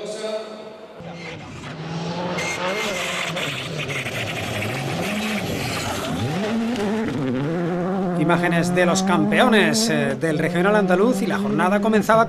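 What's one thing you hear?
A rally car engine revs hard and roars as it races past.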